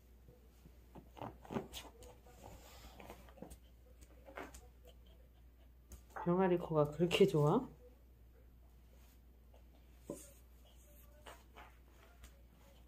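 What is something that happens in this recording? A small dog paws and scratches at a fabric mat on a hard floor.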